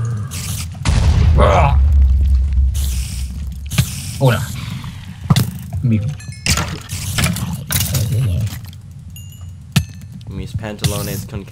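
A sword swings and strikes a creature with sharp thuds.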